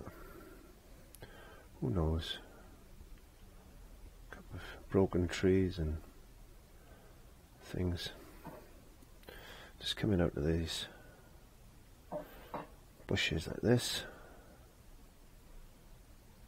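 A brush scrapes softly across canvas.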